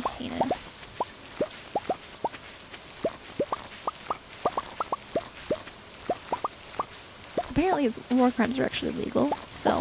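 Quick, soft plucking blips pop as crops are harvested.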